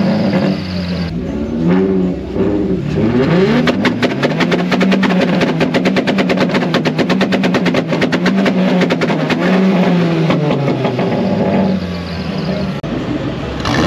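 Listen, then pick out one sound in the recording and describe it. A car engine revs hard over and over, its loud exhaust rising and falling.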